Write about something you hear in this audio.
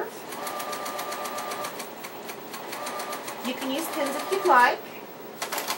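A sewing machine runs in quick, steady stitches.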